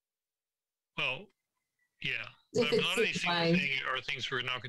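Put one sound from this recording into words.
A second man speaks over an online call.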